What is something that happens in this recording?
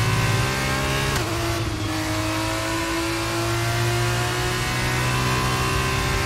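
A racing car engine screams at high revs, dropping briefly at a gear change and then climbing again.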